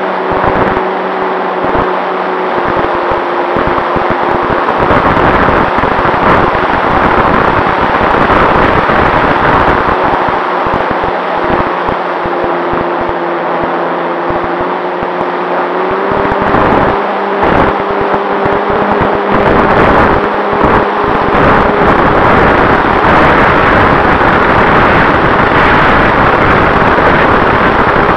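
A small propeller engine drones steadily close by, its pitch shifting slightly.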